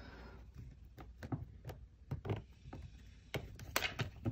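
Fingers tap and knock on a table.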